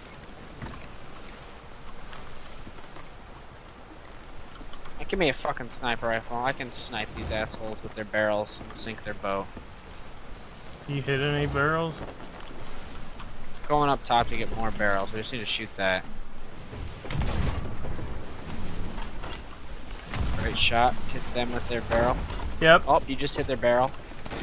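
Waves crash and churn on a stormy sea.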